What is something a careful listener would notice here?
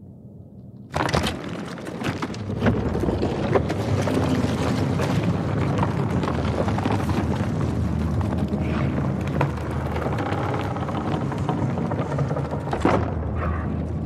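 A fleshy device squelches and gurgles as it plugs into a socket.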